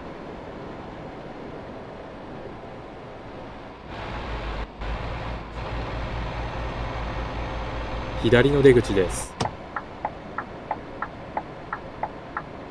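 A diesel truck engine drones while cruising on a highway.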